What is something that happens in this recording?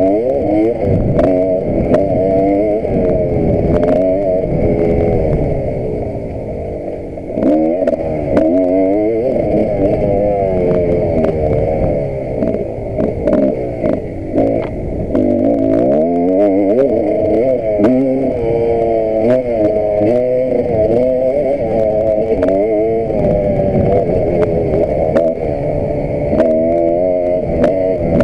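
A dirt bike engine roars close by, revving up and down as gears change.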